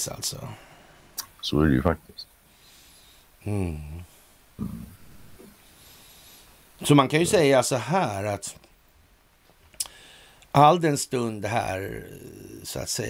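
A middle-aged man talks with animation over an online call, in short bursts.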